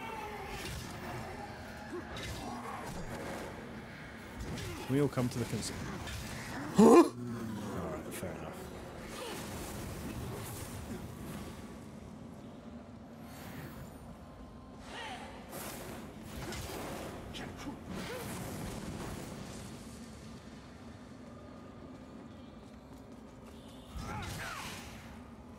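Blades clash and swoosh in a fight.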